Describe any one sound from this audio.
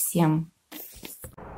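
A middle-aged woman speaks briefly over an online call.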